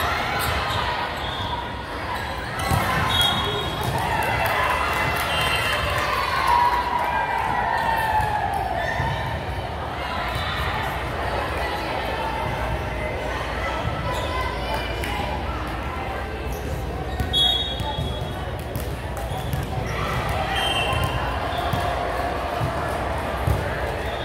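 A crowd of young women chatter and call out across the hall.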